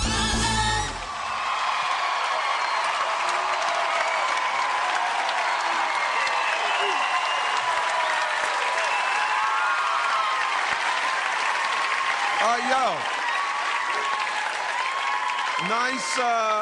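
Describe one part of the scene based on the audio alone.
A large crowd cheers and screams loudly in a big hall.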